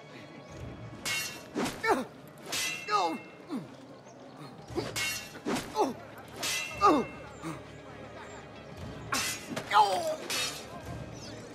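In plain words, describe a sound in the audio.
Swords swish and clash in quick bursts.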